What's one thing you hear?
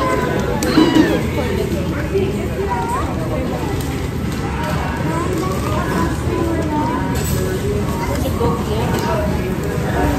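A young child speaks in a high voice.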